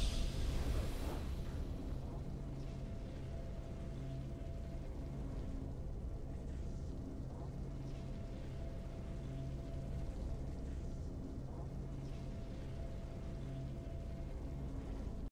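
Soft, low game music hums on steadily.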